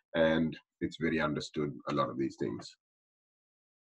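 A man speaks calmly through a microphone in an online call.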